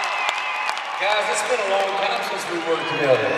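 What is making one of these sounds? A man speaks into a microphone over the cheering.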